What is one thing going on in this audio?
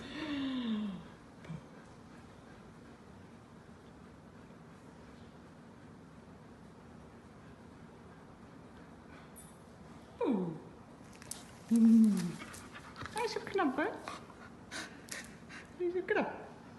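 A dog whines and howls close by in high, sliding cries.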